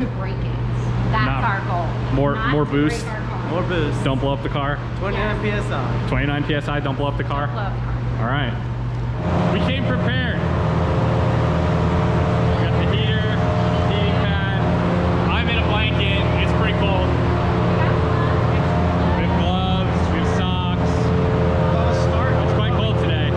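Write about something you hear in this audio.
A man talks cheerfully close by.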